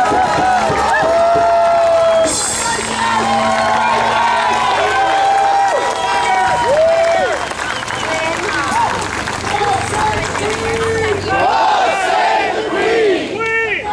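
A guitar strums along.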